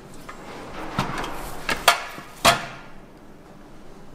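A portable gas stove is set down on a table with a clunk.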